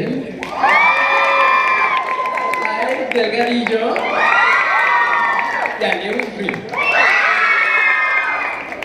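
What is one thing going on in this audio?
A large crowd of young people screams and cheers in loud waves in a big echoing hall.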